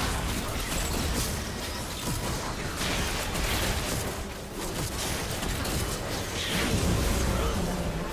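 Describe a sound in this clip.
Video game spell effects whoosh and crackle during a battle.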